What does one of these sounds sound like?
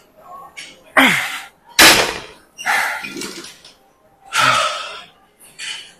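A young man strains and grunts with effort.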